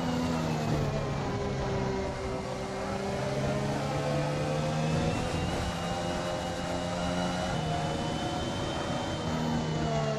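A racing car engine roars at high revs, rising and falling as it shifts gears.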